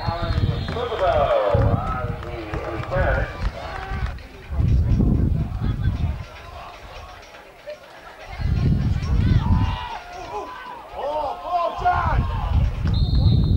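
Spectators shout and call out from the sidelines.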